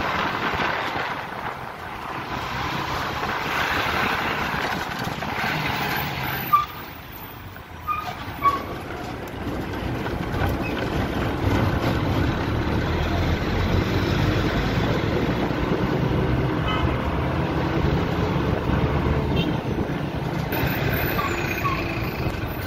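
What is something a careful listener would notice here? A diesel bus engine rumbles from inside the bus as it moves slowly.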